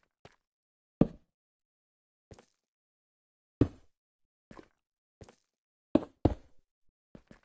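Stone blocks thud into place one at a time.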